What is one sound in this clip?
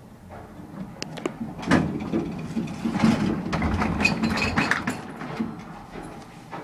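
A finger presses and clicks an elevator button.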